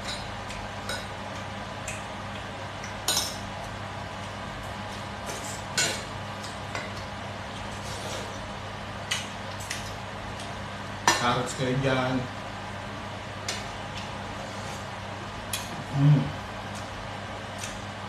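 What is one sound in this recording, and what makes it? A man slurps and chews food loudly close by.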